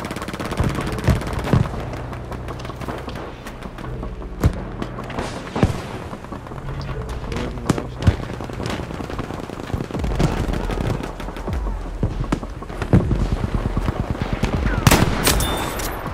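Rifle shots crack sharply, one at a time.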